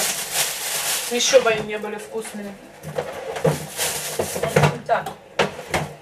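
A fridge door opens.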